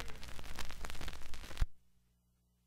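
Pop music plays from a record and stops abruptly.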